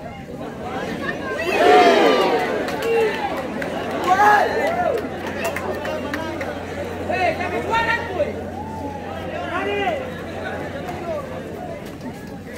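A large crowd of men shouts and cheers nearby.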